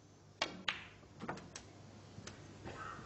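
Snooker balls knock against each other.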